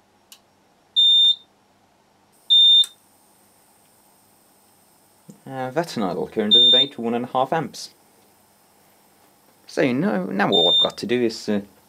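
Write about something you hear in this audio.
A multimeter gives short high beeps.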